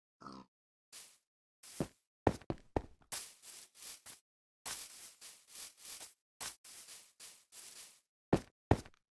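Footsteps patter quickly across grass and stone.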